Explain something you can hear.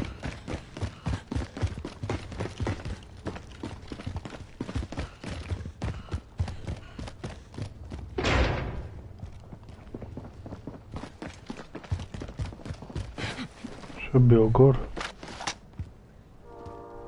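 Quick footsteps run over a hard floor.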